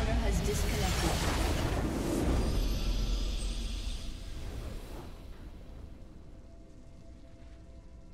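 A grand fanfare swells as a match ends.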